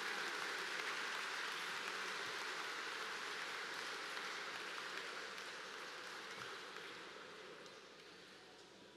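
An audience applauds, and the applause slowly fades.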